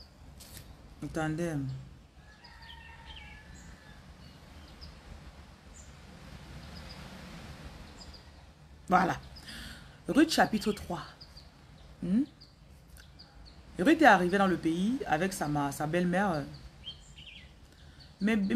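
A woman speaks softly and slowly, close by, in short phrases with pauses.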